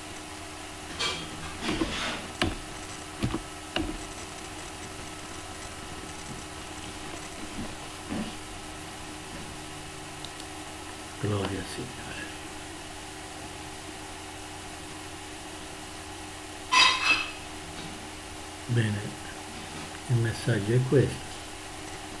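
An elderly man speaks calmly and haltingly into a computer microphone.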